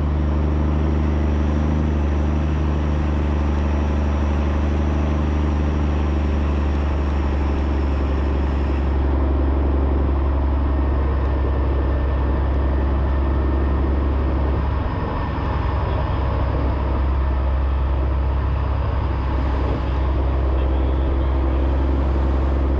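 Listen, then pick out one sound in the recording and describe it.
Tyres crunch on a dirt track.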